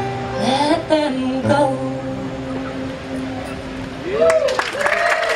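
An acoustic guitar is strummed through a loudspeaker.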